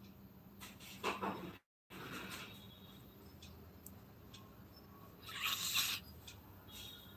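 Fabric rustles close by.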